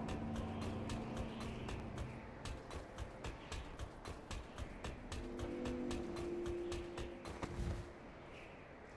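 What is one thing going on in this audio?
Footsteps clang quickly on a metal floor.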